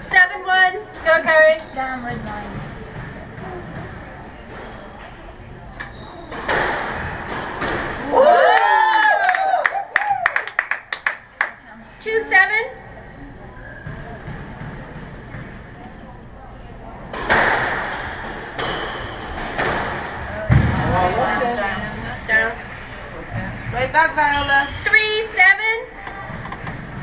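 Young women talk casually with each other in an echoing court.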